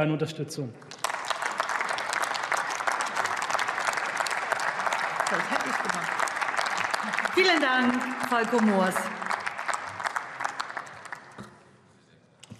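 Many people applaud in a large hall.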